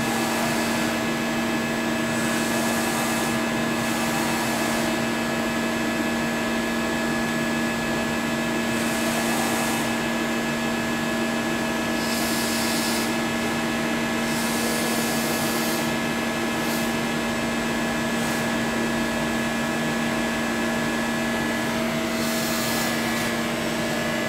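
A cutting tool scrapes and hisses against metal in bursts.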